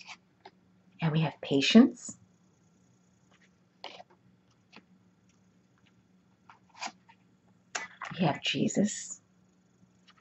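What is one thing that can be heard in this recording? A woman speaks calmly and close up, in short phrases.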